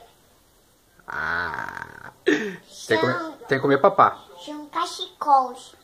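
A young child laughs close by.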